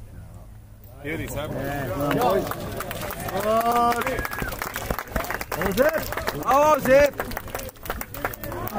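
Men nearby cheer and shout loudly outdoors.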